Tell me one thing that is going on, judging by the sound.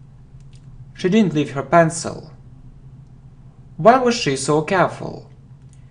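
A man speaks clearly and calmly into a close microphone, reading out short phrases.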